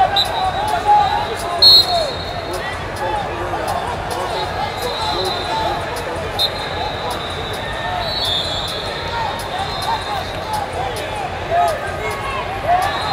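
A large crowd murmurs and calls out in a big echoing hall.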